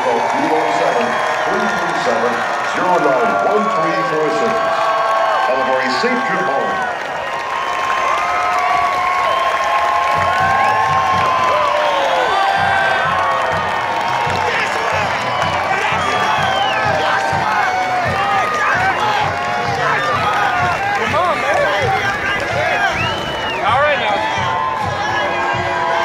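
A large stadium crowd cheers and shouts outdoors.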